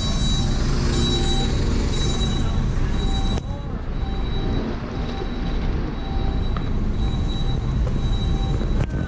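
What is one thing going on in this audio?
A bus engine rumbles steadily close by.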